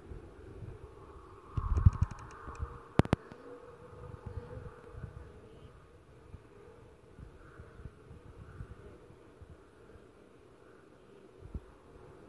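A young boy speaks quietly and close to a microphone.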